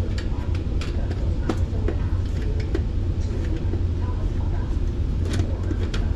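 A screwdriver turns a screw out of a metal grille.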